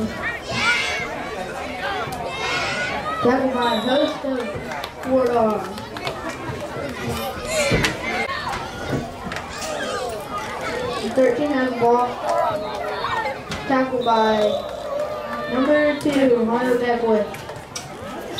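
Adult spectators shout and cheer close by, outdoors.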